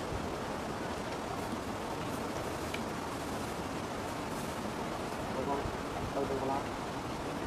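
Tall grass rustles as a man walks through it.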